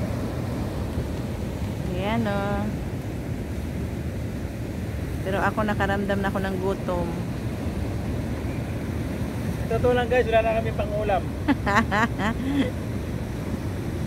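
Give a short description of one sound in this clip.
Waves crash and roar against a rocky shore.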